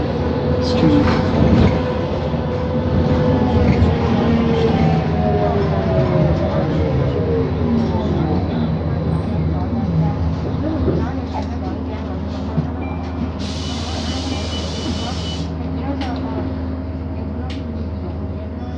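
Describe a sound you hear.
A bus engine rumbles steadily from inside the bus as it drives.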